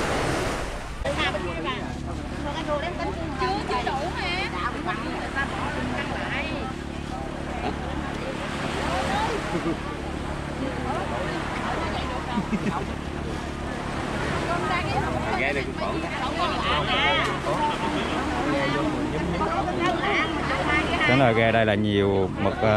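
Several women and men chatter and bargain with animation close by.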